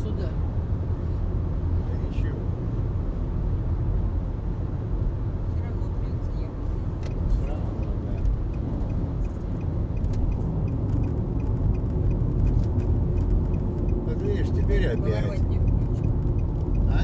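Road and tyre noise drones inside a car driving on an asphalt highway at speed.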